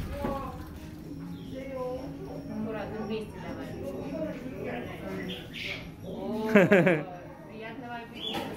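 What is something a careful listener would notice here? A young woman talks gently and playfully to a small child close by.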